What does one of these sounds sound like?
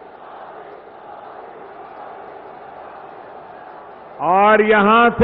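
A large outdoor crowd murmurs.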